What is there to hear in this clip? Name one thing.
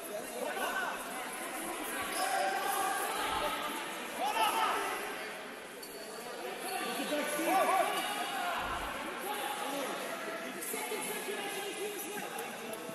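Many voices of spectators and players chatter and call out in a large echoing hall.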